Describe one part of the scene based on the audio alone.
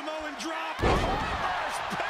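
A body slams hard onto a wrestling ring mat.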